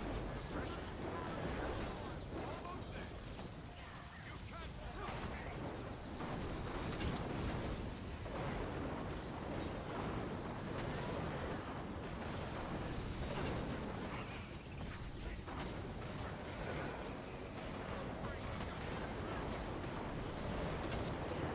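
Spells crackle and blast with fiery bursts in a battle.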